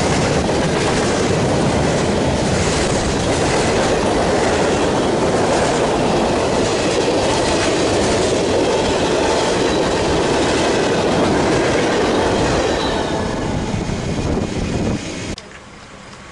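A freight train rumbles past close by, wheels clattering on the rails, then fades away.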